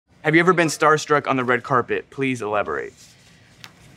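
A young man reads out aloud, close to a microphone.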